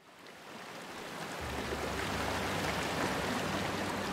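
Water laps and splashes softly.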